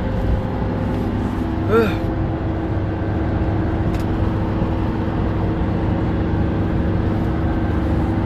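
A young man speaks close by, quietly.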